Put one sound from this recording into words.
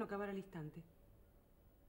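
A woman speaks briefly and with emotion nearby.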